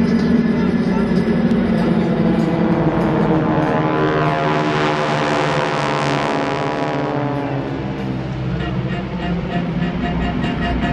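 Propeller plane engines drone loudly overhead as a formation flies past, rising and falling in pitch.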